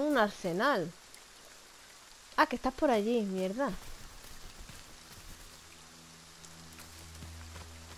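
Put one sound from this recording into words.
Footsteps rustle through dry undergrowth.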